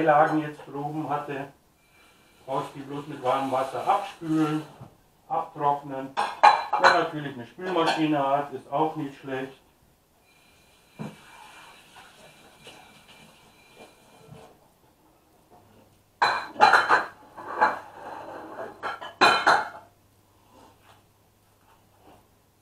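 A pot of food simmers quietly under a lid.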